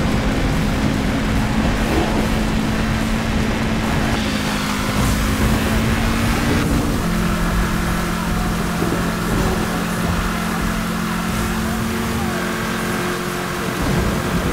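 Heavy rain hisses over a wet road.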